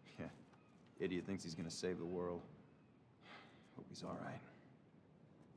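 A man speaks quietly in a low voice.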